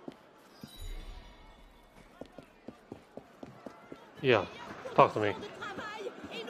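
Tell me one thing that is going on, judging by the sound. Footsteps run quickly on stone.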